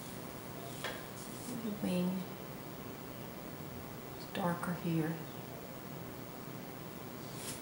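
A paintbrush softly dabs and strokes paint onto a canvas.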